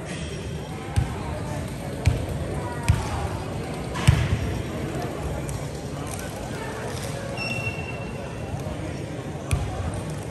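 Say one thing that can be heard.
Basketballs bounce with sharp thuds on a wooden floor.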